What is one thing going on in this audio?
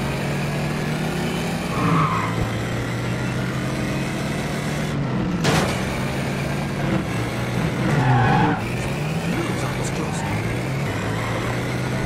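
Car tyres rumble over cobblestones.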